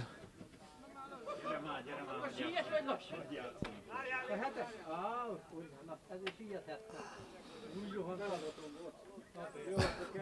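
Men talk quietly a short way off.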